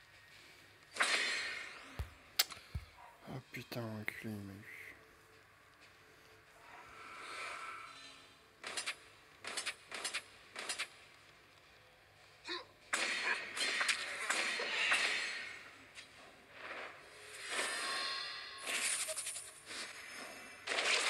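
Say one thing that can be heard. Fiery magic blasts whoosh and crackle.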